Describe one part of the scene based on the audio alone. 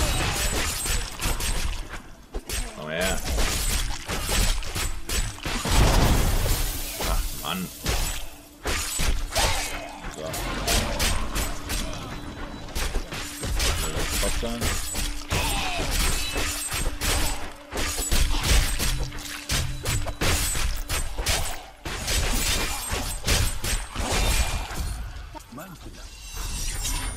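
Weapons clash and strike in a game battle.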